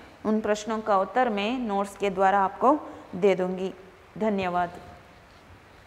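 A young woman speaks clearly into a clip-on microphone, close by.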